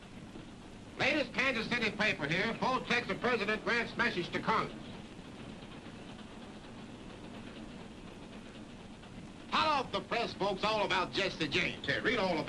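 A man calls out loudly and cheerfully, close by.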